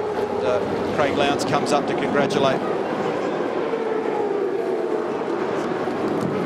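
A group of men cheer and shout excitedly.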